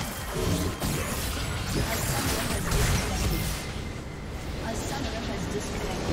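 Game spell effects crash and whoosh in a busy fight.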